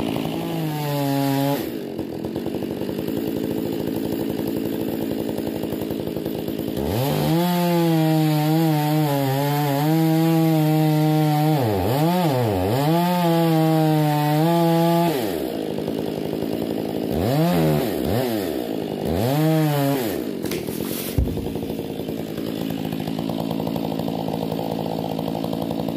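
A chainsaw runs close by, revving up and down as it cuts.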